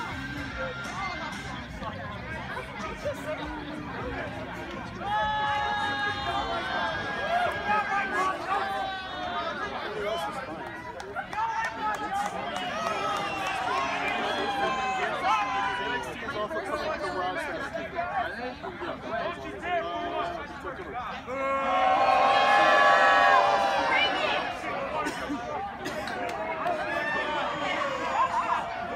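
A crowd of spectators cheers and shouts outdoors in loud bursts.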